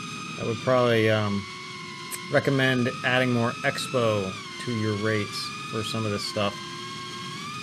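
A man talks calmly and closely into a microphone.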